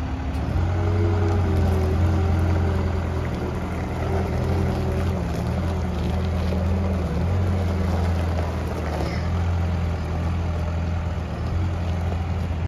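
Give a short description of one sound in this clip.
Large tyres crunch over gravel.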